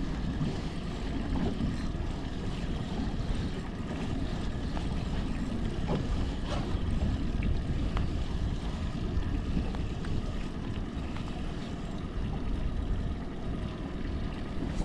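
Wind blows steadily outdoors over open water.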